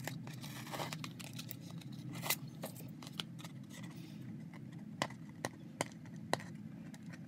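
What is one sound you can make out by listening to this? Paper rustles and crinkles close by.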